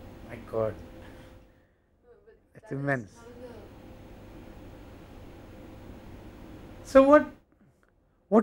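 A young woman speaks with animation, a little distant.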